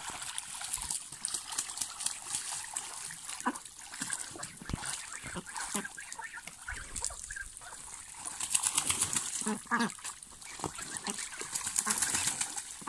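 Water splashes softly as ducks paddle about.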